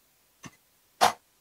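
Glasses clink together.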